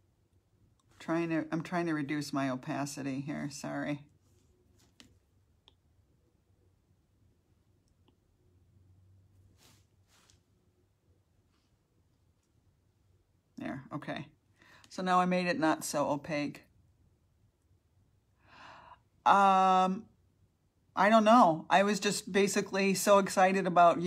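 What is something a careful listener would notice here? A woman speaks calmly, close by, in short bursts with pauses.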